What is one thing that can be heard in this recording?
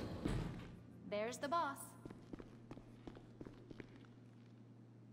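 Footsteps tap on a hard floor.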